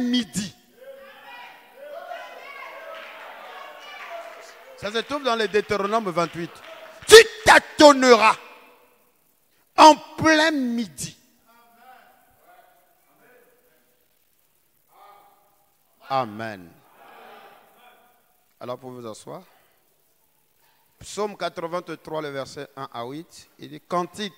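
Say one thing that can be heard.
A man preaches with animation into a microphone, pausing between phrases.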